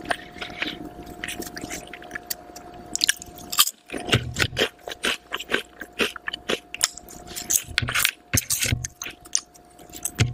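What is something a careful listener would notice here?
A woman crunches on crisp chips close to a microphone.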